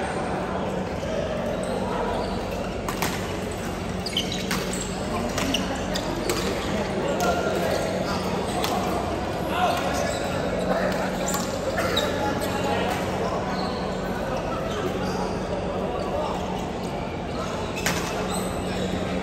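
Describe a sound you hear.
Badminton rackets strike a shuttlecock in a large echoing hall.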